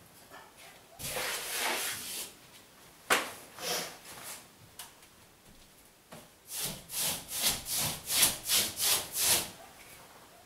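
Wallpaper rustles and swishes as it is smoothed onto a wall.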